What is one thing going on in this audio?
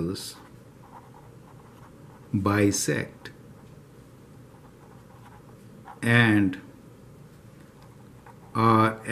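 A felt marker scratches across paper.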